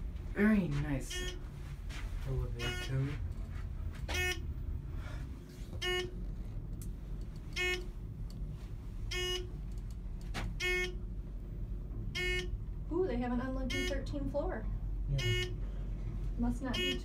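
An elevator motor hums low and steadily.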